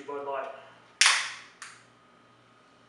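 A can pops and hisses open.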